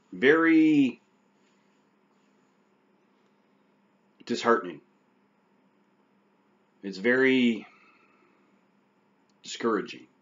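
A middle-aged man speaks calmly in short phrases close to a microphone, with pauses between them.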